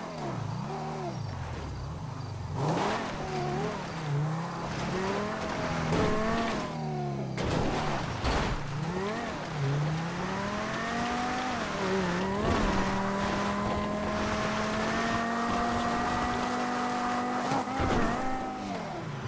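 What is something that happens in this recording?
A sports car engine revs up and down as the car drives over rough ground.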